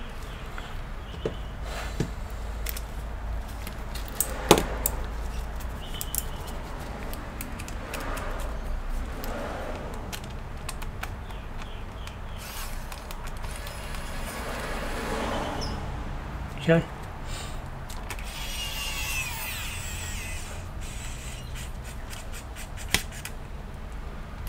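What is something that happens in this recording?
Gloved hands tap and click on hard plastic.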